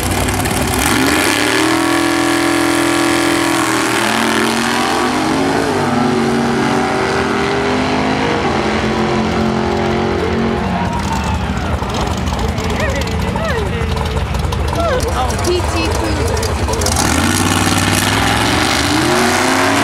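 Racing car engines rumble loudly at idle.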